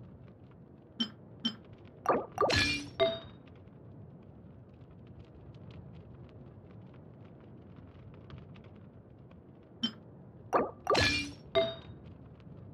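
Soft menu clicks and bright chimes sound in two quick bursts.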